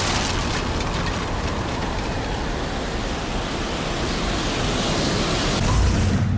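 Strong wind roars steadily.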